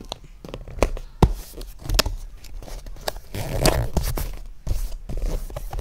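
Paper peels and crinkles close by.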